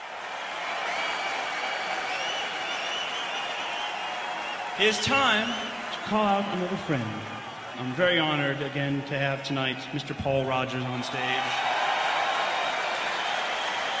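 A large audience cheers and whistles in a large echoing hall.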